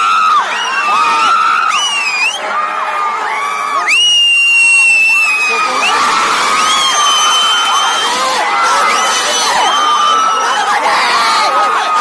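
Fans whistle shrilly among the crowd.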